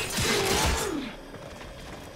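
A blade swings through the air with a loud whoosh.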